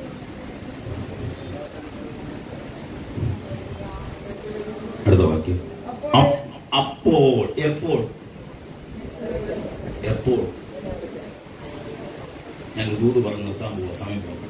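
A man preaches with passion into a microphone, heard through loudspeakers in a room that echoes.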